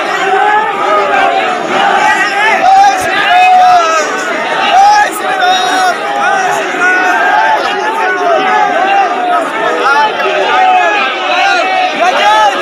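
A large crowd of men shout and chant loudly all around, close by.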